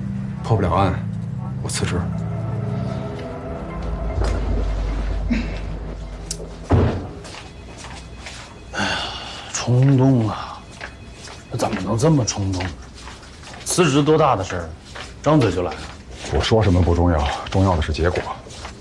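A middle-aged man speaks nearby.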